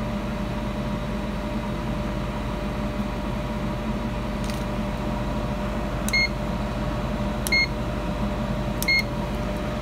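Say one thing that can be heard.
An air fryer fan hums steadily.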